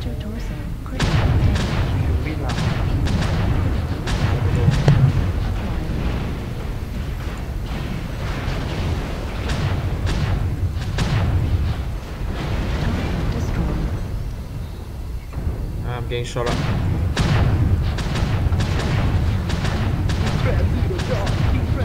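Explosions boom and rumble heavily.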